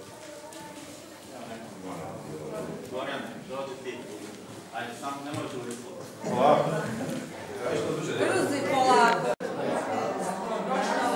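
A crowd of adults murmurs and chatters nearby.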